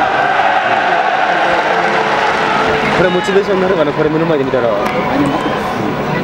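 A large crowd of football supporters chants in unison in an open stadium.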